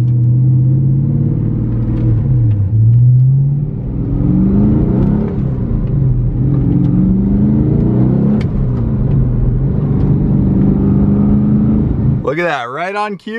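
A sports car engine hums and revs up and down while driving.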